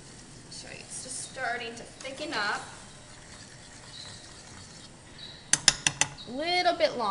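A spoon stirs and clinks against a metal saucepan.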